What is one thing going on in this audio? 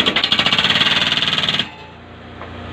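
A hydraulic breaker hammers rapidly into the ground.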